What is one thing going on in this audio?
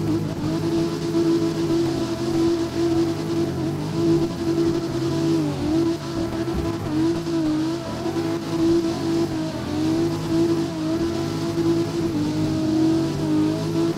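Tyres screech on tarmac while sliding.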